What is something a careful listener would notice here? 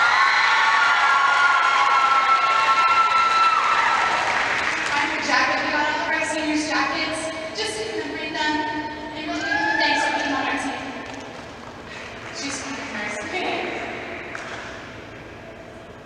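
A group of young women sing together in a large hall.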